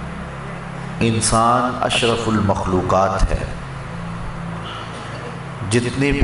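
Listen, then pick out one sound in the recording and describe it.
A man speaks with feeling into a microphone.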